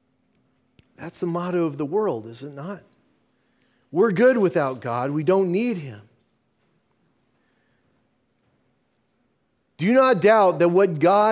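An older man preaches through a microphone, speaking with feeling in bursts and pauses.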